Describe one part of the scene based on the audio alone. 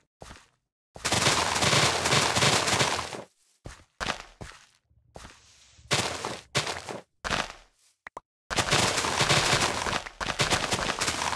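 Leaves rustle and crunch as they break.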